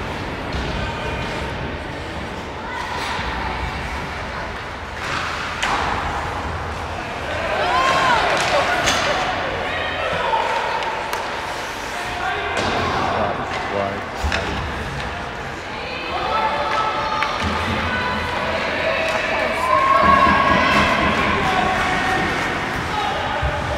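Spectators shout and cheer in an echoing ice rink.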